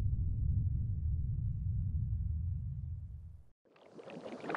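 A deep rumble roars steadily, then cuts off.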